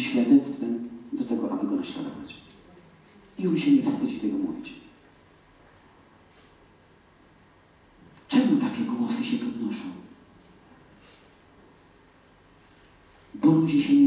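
A woman speaks calmly through a microphone in a large echoing hall, with pauses between phrases.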